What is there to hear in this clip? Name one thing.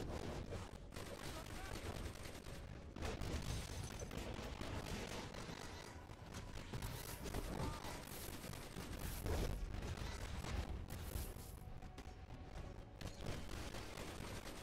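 Explosions and energy blasts boom and crackle in a fight.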